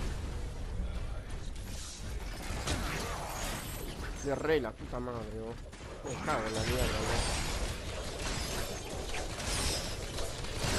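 Gunfire and magic blasts crackle and boom in a video game.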